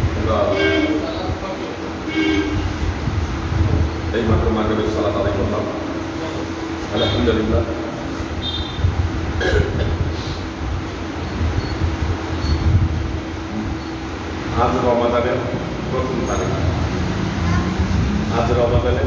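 A middle-aged man speaks calmly into a clip-on microphone, with pauses.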